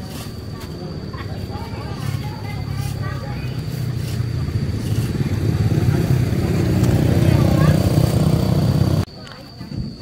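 A plastic bag rustles and crinkles close by.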